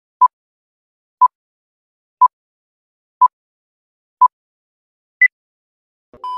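A countdown beeps once each second, with a higher final beep.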